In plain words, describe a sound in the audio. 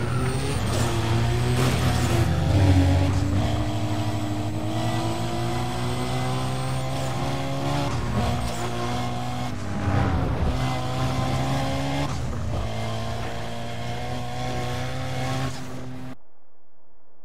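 A car engine roars at high revs and shifts through its gears.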